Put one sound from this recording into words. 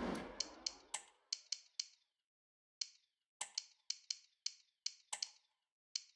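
Short soft clicks tick one after another.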